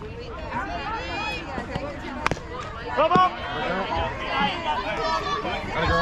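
Young women shout and cheer excitedly outdoors.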